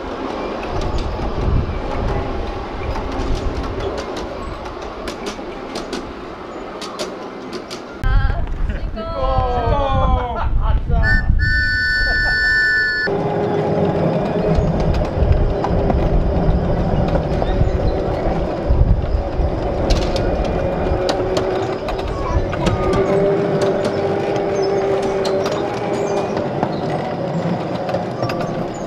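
A small ride-on train rumbles and clatters along a track.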